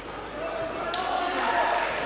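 Gloved punches thud against a fighter.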